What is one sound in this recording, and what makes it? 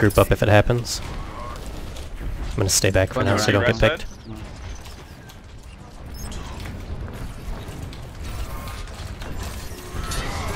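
A game weapon fires energy orbs with short zapping shots.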